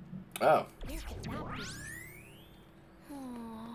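A magical shimmering whoosh sweeps upward.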